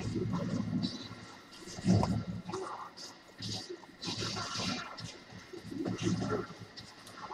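Swords clash and magic blasts burst in a fight.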